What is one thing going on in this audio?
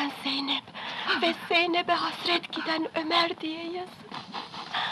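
A young woman moans and sobs in pain.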